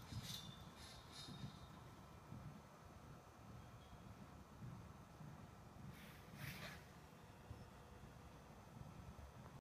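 A horse's hooves thud softly on sand.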